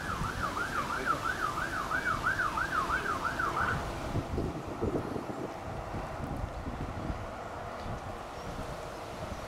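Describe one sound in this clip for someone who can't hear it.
Fire engines rumble past on the road.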